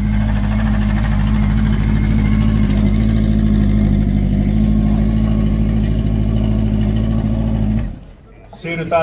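A motorcycle engine idles with a deep, steady rumble.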